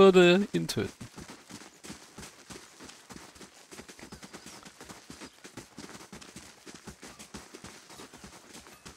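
Footsteps patter quickly on a dirt path.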